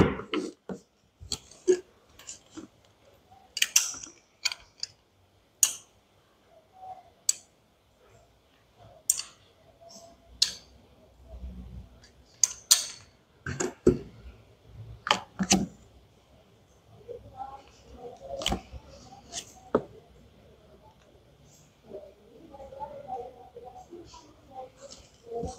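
Plastic toy pieces click and tap as hands handle them.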